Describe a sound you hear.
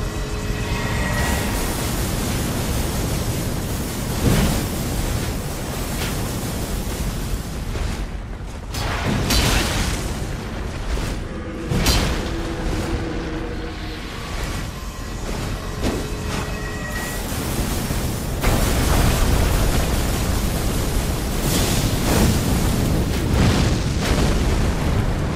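Flames roar and crackle from a burning blade.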